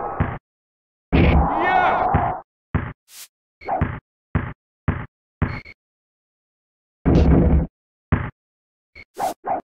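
A basketball bounces on a hardwood court with short, hollow thumps.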